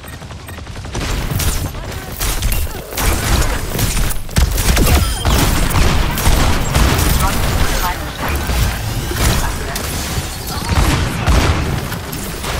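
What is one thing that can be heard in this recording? A heavy energy gun fires in rapid bursts.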